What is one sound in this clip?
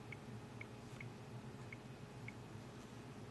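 A phone beeps softly with each key press.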